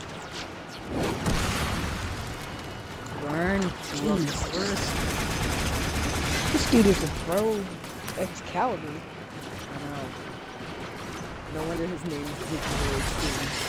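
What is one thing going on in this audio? Gunfire and energy blasts crackle and boom in rapid bursts.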